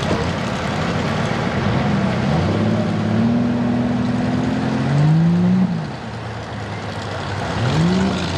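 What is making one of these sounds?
Tyres churn and splash through deep mud and water.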